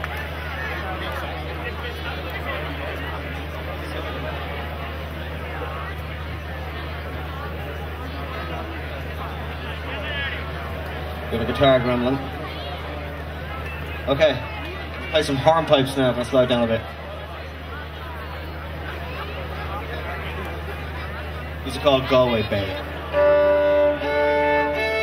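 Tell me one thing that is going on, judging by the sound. An audience murmurs and chatters.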